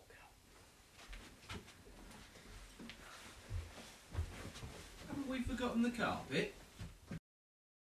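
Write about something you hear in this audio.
Children's feet thump on the floor as they run off.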